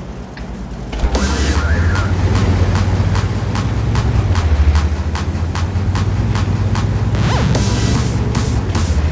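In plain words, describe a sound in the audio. Tank tracks clatter and squeak over the ground.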